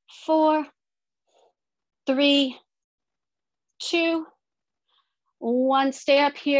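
A woman calls out short instructions in bursts, heard through an online call.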